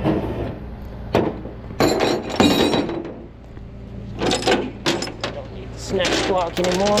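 Metal chains clank and rattle against a steel deck.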